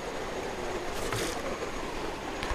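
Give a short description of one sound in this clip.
A net splashes into shallow water.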